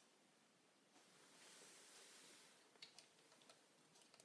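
Clothing rustles softly close by.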